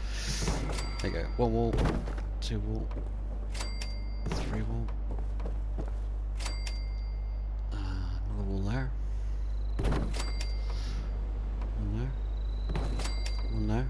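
Short electronic chimes ring out now and then.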